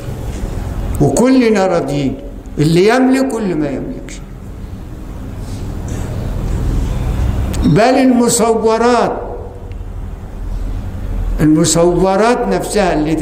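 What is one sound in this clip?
An elderly man chants with a drawn-out melodic voice through a microphone, in a large echoing hall.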